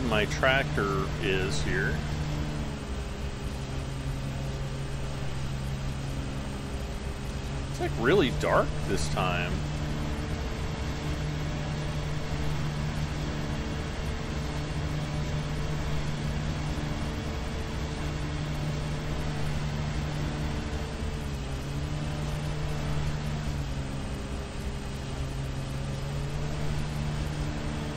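A lawn mower engine drones steadily, its pitch rising and dipping slightly.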